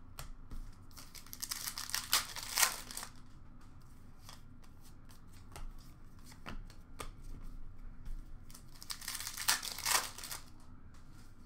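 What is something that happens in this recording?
A foil card pack crinkles as it is torn open.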